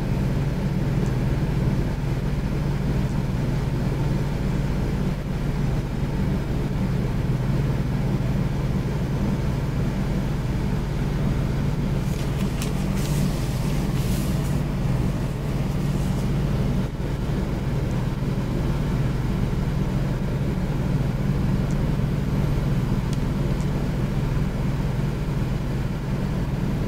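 A brush sweeps softly across paper.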